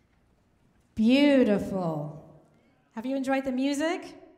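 A woman sings through a microphone in a large echoing hall.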